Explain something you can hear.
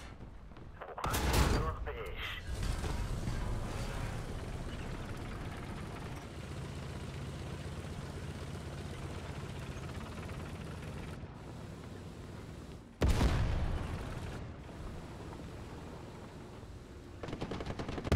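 A tank engine rumbles and clanks steadily as the tank drives.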